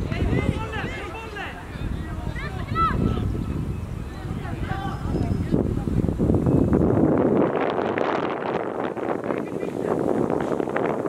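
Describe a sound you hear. Players call out to each other far off across an open field.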